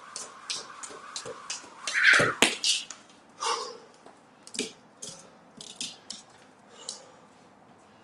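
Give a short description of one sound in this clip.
A jump rope slaps the floor in a quick rhythm.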